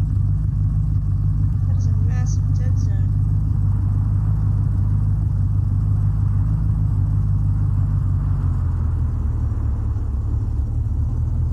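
A vehicle engine rumbles steadily as a jeep drives over sand.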